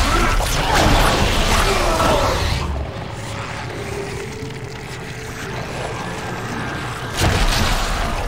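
A loud blast bursts and crackles.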